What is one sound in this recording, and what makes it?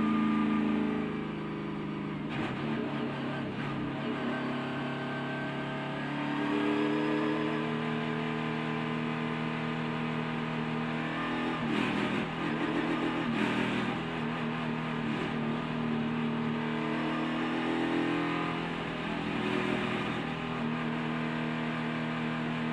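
A race car engine roars loudly at high speed, close by.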